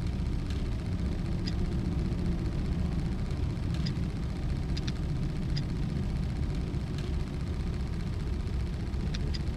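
Metal rings turn with sharp clicks.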